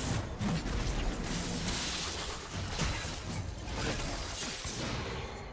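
Game spell effects and blows crash and whoosh in a fast battle.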